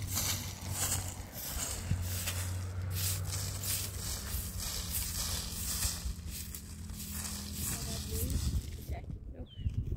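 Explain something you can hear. A broom sweeps briskly over dusty ground.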